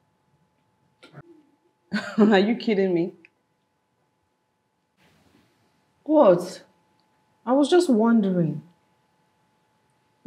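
A second woman speaks calmly, close by.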